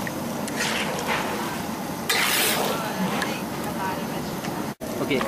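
Vegetables sizzle loudly in a hot pan.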